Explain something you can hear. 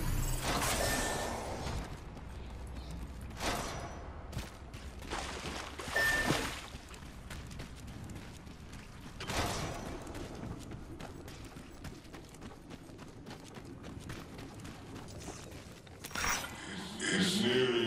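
Footsteps tread steadily over hard ground.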